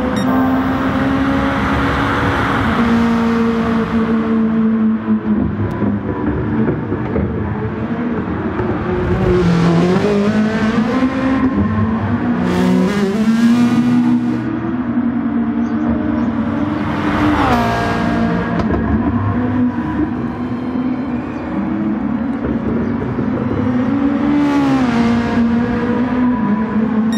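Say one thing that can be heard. A race car engine roars at high revs, shifting gears up and down.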